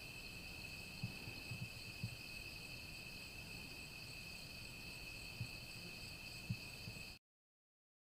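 Footsteps crunch softly on dry leaves.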